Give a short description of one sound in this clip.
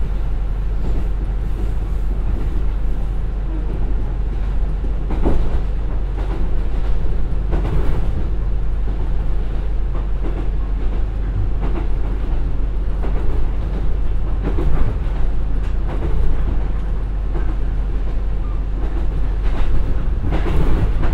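A diesel train engine rumbles steadily.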